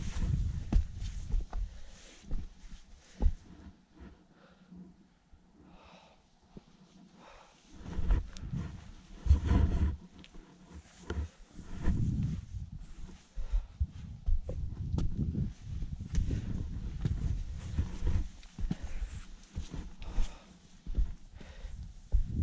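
Climbing boots scrape and knock on rock.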